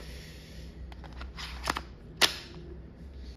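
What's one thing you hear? A hard plastic part clicks as it is handled.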